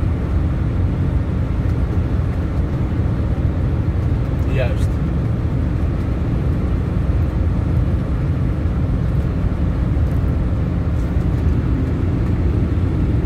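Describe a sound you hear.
Tyres roar steadily on a road, heard from inside a car.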